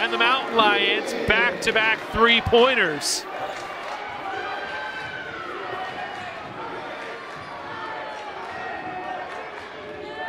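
A basketball bounces on the court as it is dribbled.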